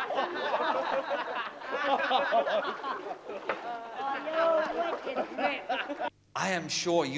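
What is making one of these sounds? Water splashes loudly as a man thrashes about.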